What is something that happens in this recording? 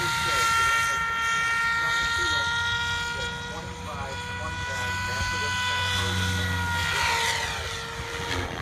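A small model airplane engine whines steadily overhead, dropping slightly in pitch as it passes.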